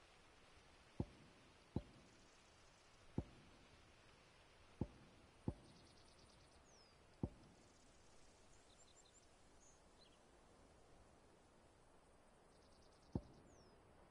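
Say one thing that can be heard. Soft interface clicks sound as menu options change.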